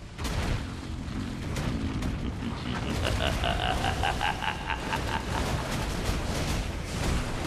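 Rapid hits thud and crack against creatures.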